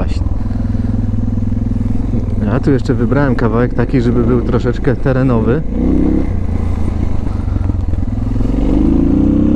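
A motorcycle engine runs and revs up and down close by.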